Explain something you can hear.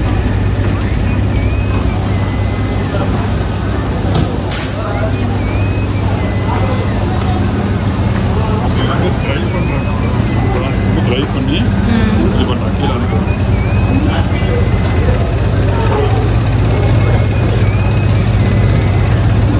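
Electric motors drone loudly.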